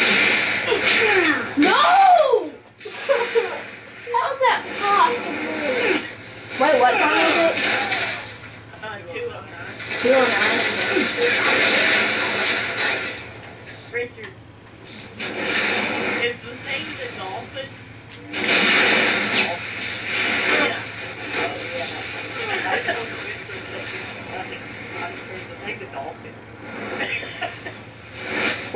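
Video game gunfire and effects play through a television speaker.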